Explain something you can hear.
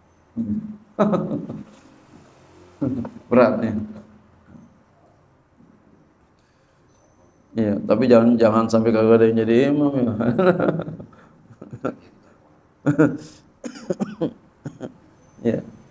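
A man laughs into a microphone.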